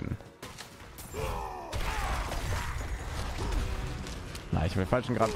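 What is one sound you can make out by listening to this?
Magic blasts and weapon hits crash and whoosh in a fight.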